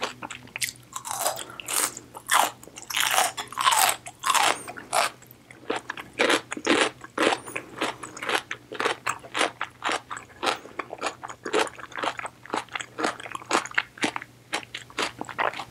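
A woman slurps noodles loudly close to a microphone.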